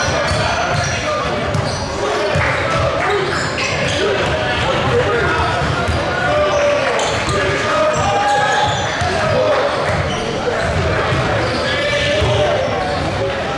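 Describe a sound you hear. Young people chatter and call out in the gym.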